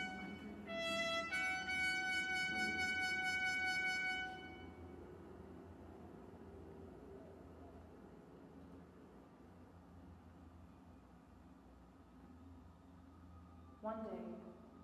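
A recorder plays a few long, clear notes.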